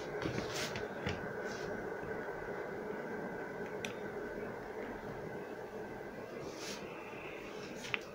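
A plastic radio case clicks and knocks as a hand picks it up.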